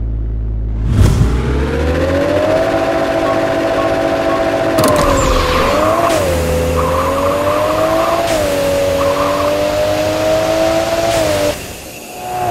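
A car engine roars and shifts through gears as the car speeds away.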